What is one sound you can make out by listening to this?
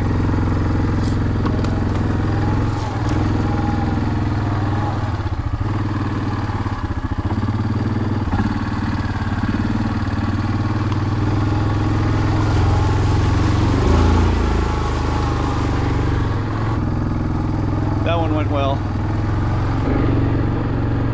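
An engine idles and rumbles steadily close by.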